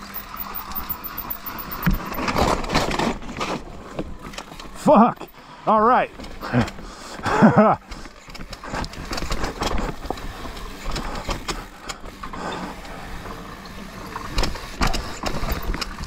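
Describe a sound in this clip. A mountain bike's frame and chain rattle over bumps.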